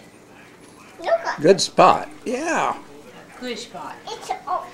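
A young child babbles and squeals.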